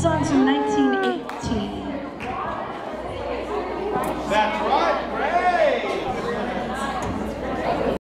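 A double bass plays a low plucked line.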